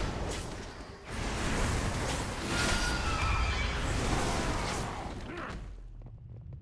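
Magic blasts crackle and boom during a fight.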